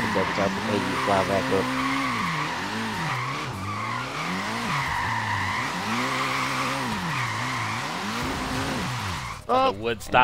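Tyres screech in long squeals as a car drifts.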